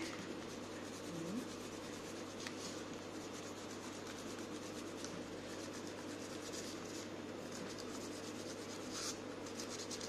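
Tissue paper crinkles softly as it is pressed and scrunched by hand.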